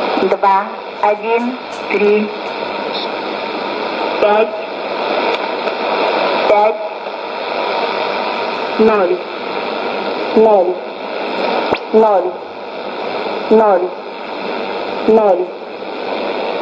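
A radio gives out short falling whistling chirps, again and again, through its small speaker.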